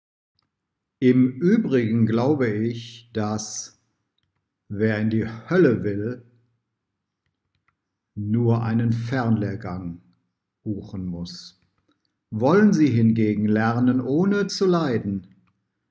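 A middle-aged man speaks calmly and clearly, close to a microphone.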